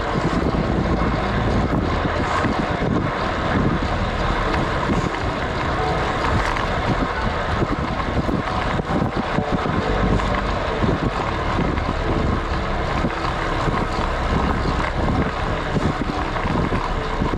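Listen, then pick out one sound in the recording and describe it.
Road bike tyres hum on asphalt.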